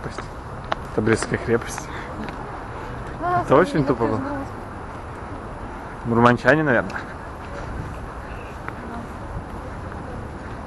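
Footsteps scuff on stone paving.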